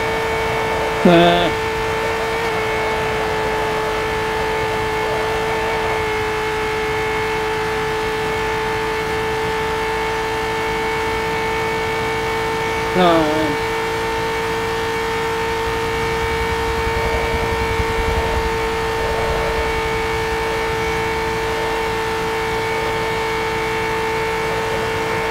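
A racing car engine drones steadily at high speed.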